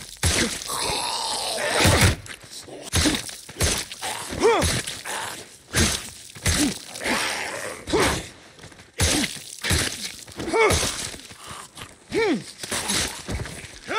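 Heavy blows thud and smack in quick succession.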